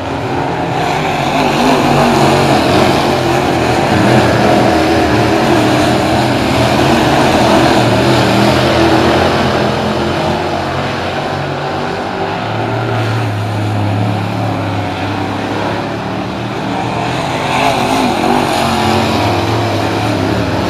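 Engines rise and fall in pitch as race cars pass by.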